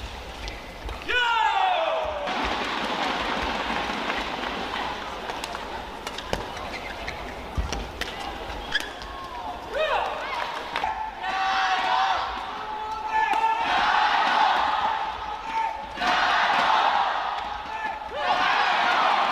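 Sports shoes squeak sharply on a court floor.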